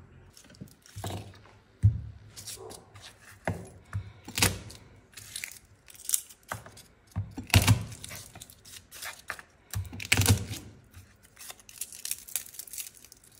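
A knife presses down on garlic cloves on a wooden board, with sharp knocks and thuds.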